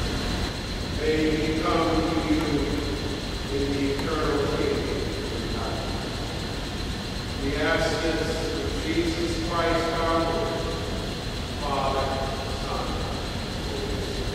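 A man speaks slowly through a microphone in a large echoing hall.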